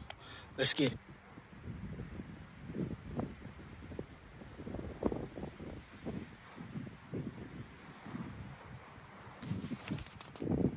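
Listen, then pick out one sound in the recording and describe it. Wind rumbles and buffets against the microphone.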